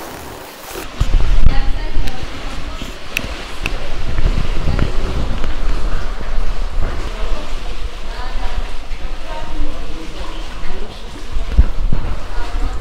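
Water flows and splashes nearby.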